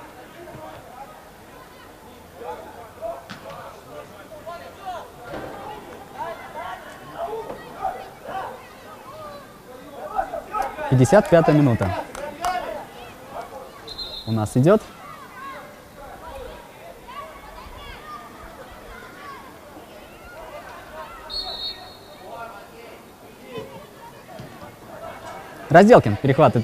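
Male footballers shout to each other across an open outdoor pitch.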